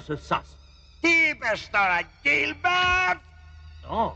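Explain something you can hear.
An old man shouts angrily.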